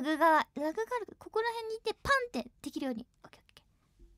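A young woman speaks excitedly into a microphone in a high voice.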